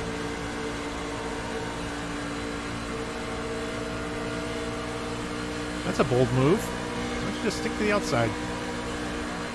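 A V8 race truck engine drones at full throttle.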